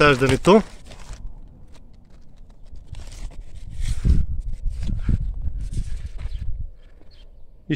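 Leaves rustle and brush close by.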